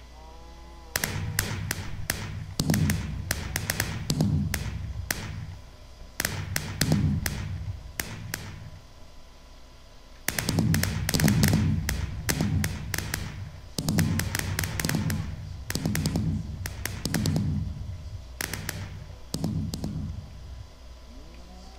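Fireworks launch with low booming thumps.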